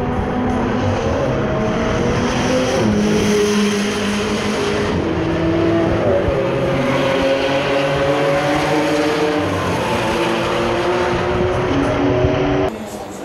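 Racing car engines roar and whine past on a track nearby.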